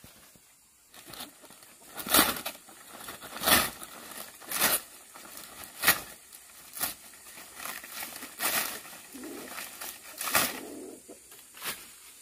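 Dry palm leaves rustle and crackle as they are handled.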